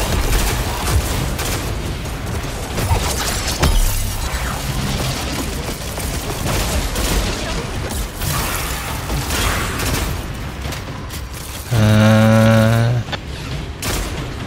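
Gunfire from a video game rifle crackles in rapid bursts.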